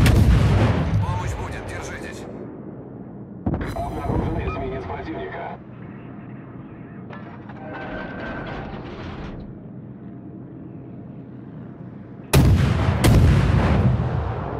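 Heavy guns fire in loud, booming salvos.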